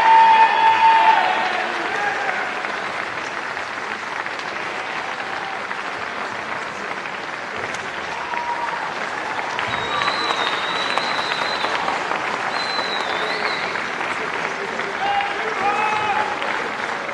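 A crowd applauds in a large echoing gym.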